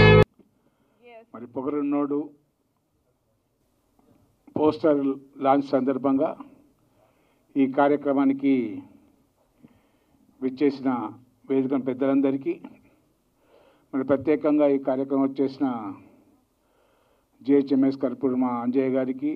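A middle-aged man speaks calmly into a microphone, in pauses.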